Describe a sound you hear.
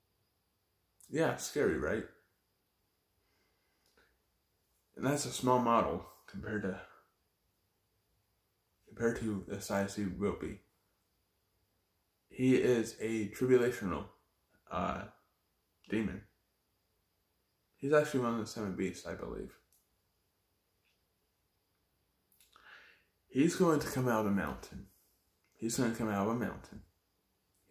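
A young man speaks calmly and close by, in short phrases with pauses between them.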